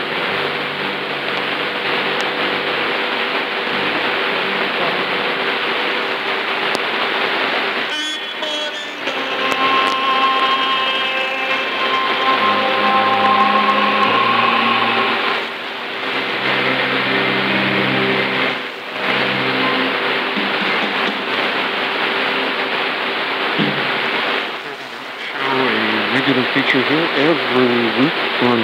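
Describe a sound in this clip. A shortwave radio hisses and crackles with static.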